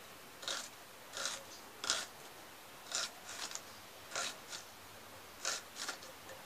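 A knife scrapes a boiled egg in short, repeated strokes.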